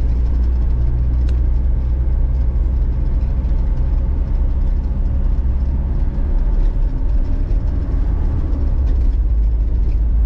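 Wind rumbles against a moving car.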